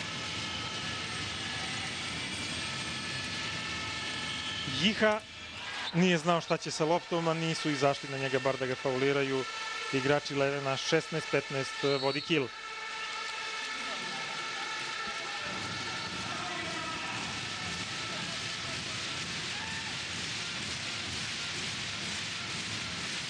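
A large crowd cheers and chants in a big echoing hall.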